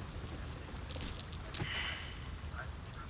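A body thuds onto the ground.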